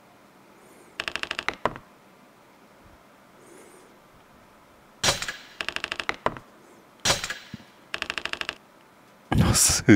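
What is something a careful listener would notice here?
Rapid electronic ticks sound as a score counter tallies up.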